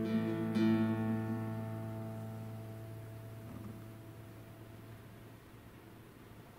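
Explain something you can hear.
An acoustic guitar strums a final chord that slowly rings out and fades.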